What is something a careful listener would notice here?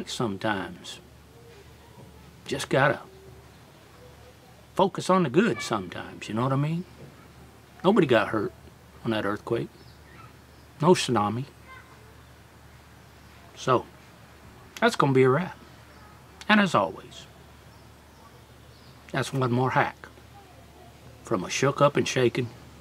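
A middle-aged man speaks calmly in short phrases close to the microphone.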